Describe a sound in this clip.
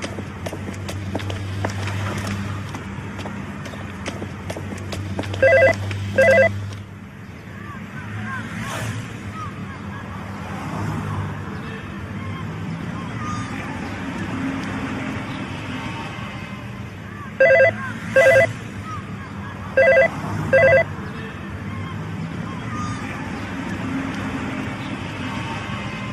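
A young woman sings along to music.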